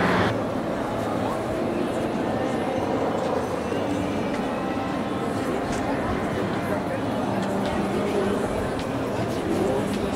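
A helicopter drones overhead.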